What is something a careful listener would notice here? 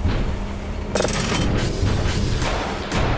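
A lever clicks and clanks.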